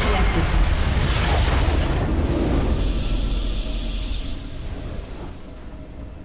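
A loud magical explosion crashes and rumbles, then fades.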